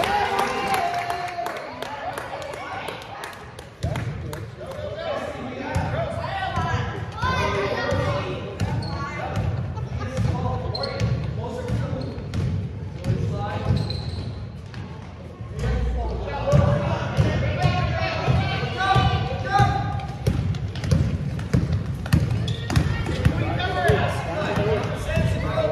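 Young girls call out and shout during play.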